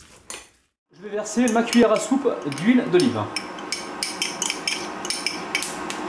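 Oil sizzles in a hot pan.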